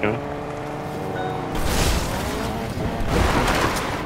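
A car engine hums and revs as the car speeds along.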